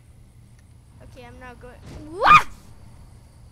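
A young boy shouts with excitement into a headset microphone.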